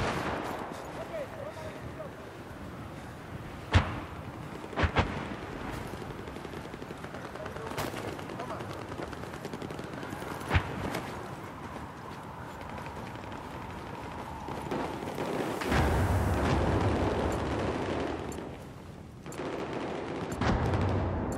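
Footsteps run over rubble and hard floors.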